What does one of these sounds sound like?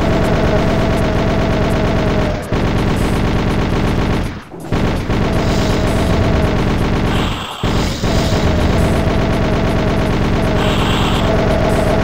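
Rockets launch with a whoosh.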